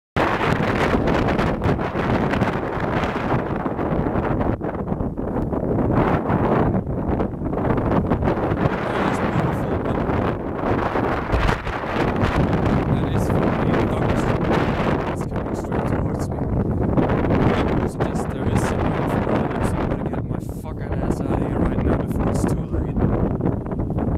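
Strong wind blows and buffets the microphone outdoors.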